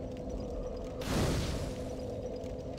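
A flame suddenly flares up with a loud whoosh.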